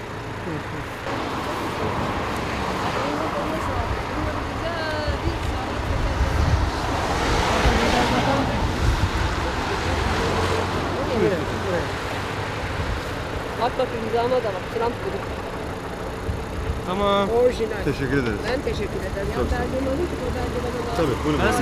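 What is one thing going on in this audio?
A woman speaks agitatedly nearby, outdoors.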